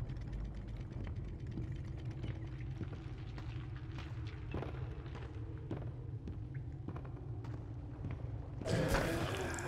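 Footsteps thud slowly on a hollow wooden floor.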